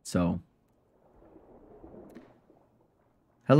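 A man speaks quietly into a microphone.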